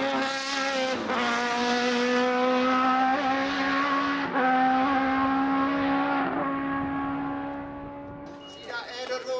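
A race car engine drones away into the distance.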